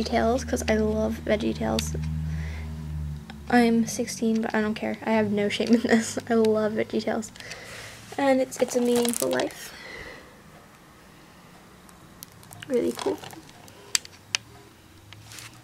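A plastic case clicks and rattles as it is handled.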